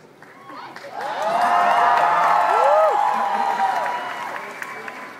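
A crowd cheers and shrieks loudly in a large hall.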